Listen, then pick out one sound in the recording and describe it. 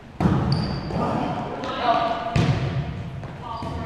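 Players call out to each other across an echoing hall.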